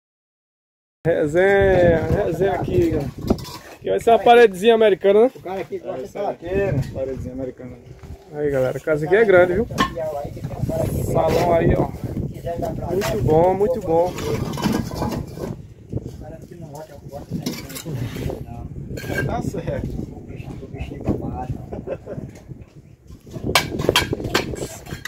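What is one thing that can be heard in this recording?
A trowel taps and scrapes against bricks.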